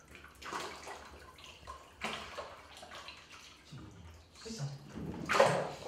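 Water splashes and drips from a wooden frame as it is lifted from a vat.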